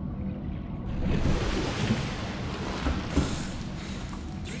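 Water splashes as a small submarine breaks the surface.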